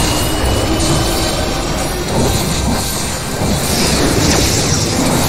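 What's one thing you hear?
Spell effects whoosh and blast in a video game battle.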